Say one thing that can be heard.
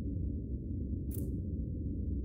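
A soft interface click sounds once.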